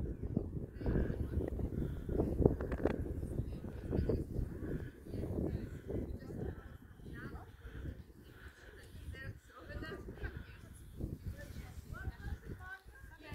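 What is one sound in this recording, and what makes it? Men and women talk casually nearby outdoors.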